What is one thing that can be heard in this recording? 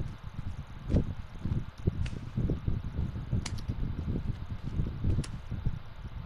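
Small rocks clack as a hand picks them up off the ground.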